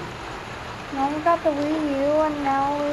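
A young girl speaks close by.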